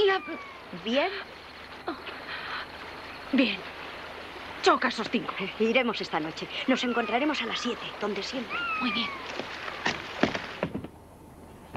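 A second young boy answers softly.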